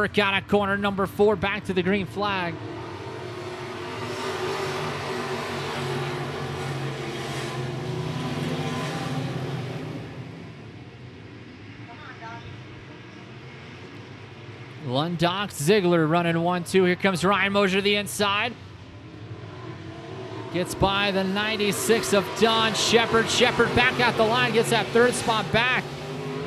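Race car engines roar loudly nearby.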